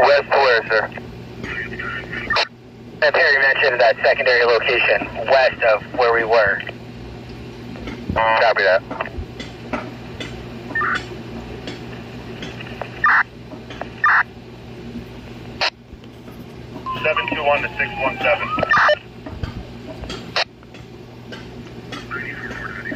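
A handheld radio's squelch clicks and hisses between transmissions.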